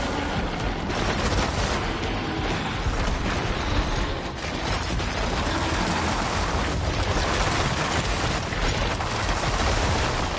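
Energy beams crackle and hum in bursts.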